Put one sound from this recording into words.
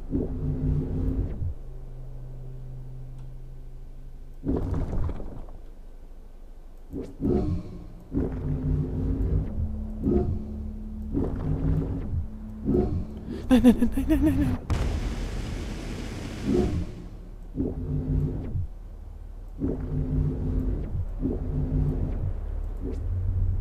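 An electric beam crackles and buzzes in short bursts.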